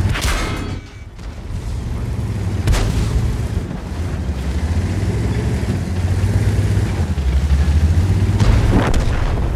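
Cannon shots boom.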